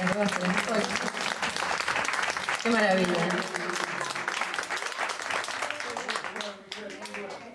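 An audience claps and applauds outdoors.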